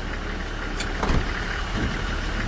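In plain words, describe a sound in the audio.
A bus door opens with a sudden hiss and thud.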